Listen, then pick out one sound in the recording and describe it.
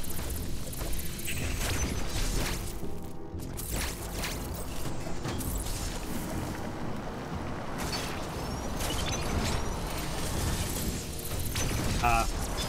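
Game sound effects zap and swoosh in quick bursts.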